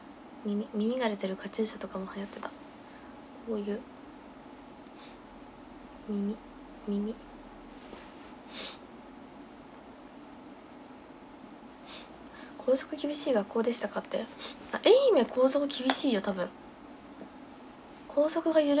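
A young woman talks close to a microphone, casually and with pauses.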